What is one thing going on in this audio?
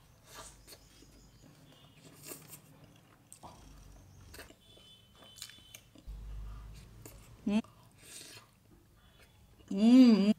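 A young woman chews food wetly and smacks her lips close to a microphone.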